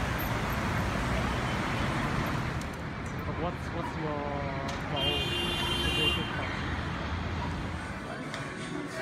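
City traffic rumbles by outdoors.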